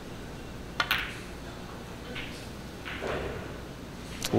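Snooker balls knock against each other and roll.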